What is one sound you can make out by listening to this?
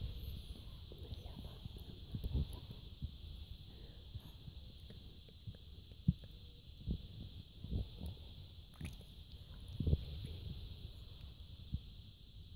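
A hand rubs a small dog's fur with soft rustling and muffled thumps.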